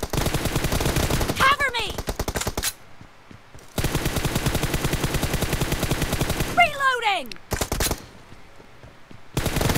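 A rifle fires in rapid bursts of gunfire.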